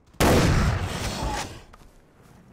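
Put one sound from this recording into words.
A rifle shot booms and rolls away in an echo.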